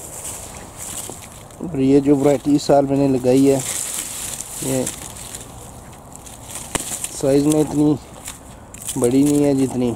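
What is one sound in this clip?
Plant stems and dry leaves rustle as they are pushed aside by hand.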